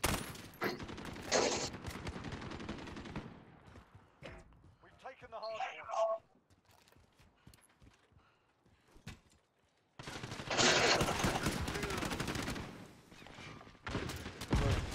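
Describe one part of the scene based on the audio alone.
Rapid gunshots rattle in bursts.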